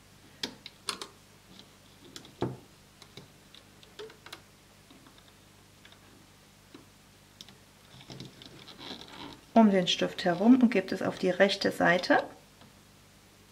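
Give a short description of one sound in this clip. A small plastic hook clicks and taps against plastic pegs.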